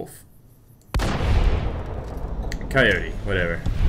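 A shotgun fires with a loud blast that echoes.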